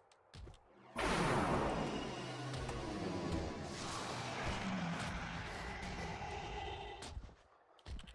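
Combat blasts and clashes ring out loudly in a fight.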